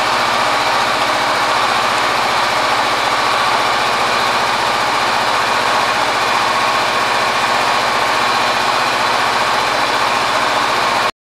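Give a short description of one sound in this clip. A motorcycle engine idles steadily with a fast, even rumble.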